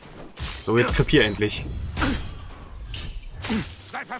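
Swords clang and clash in a fight.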